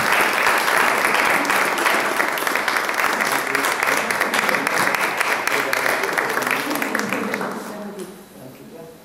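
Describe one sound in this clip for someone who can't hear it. An audience applauds in a large room, then the clapping fades.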